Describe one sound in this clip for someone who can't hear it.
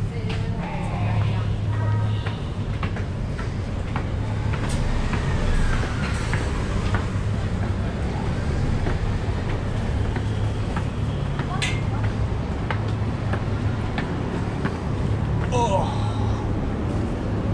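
City traffic rumbles steadily nearby.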